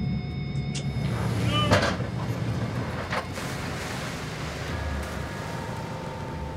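Sea water splashes and crashes over a boat deck.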